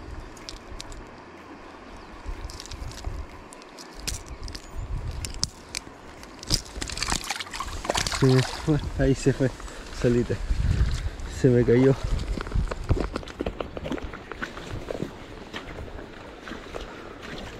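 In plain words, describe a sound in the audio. A shallow river flows and burbles steadily.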